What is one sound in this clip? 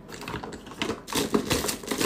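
A spatula scrapes and stirs inside a silicone bowl.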